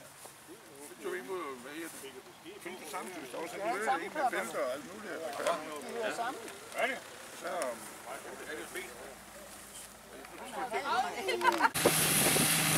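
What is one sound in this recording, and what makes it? Elderly men talk and chat casually nearby.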